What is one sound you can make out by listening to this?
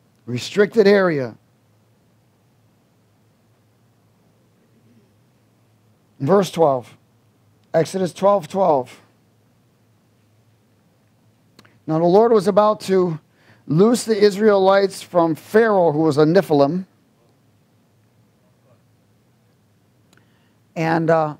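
A middle-aged man speaks calmly through a microphone, reading out with pauses.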